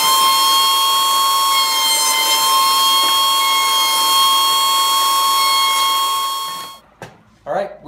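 A router whines steadily.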